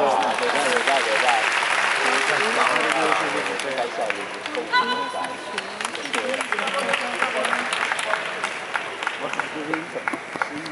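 Many people talk and murmur in a large echoing hall.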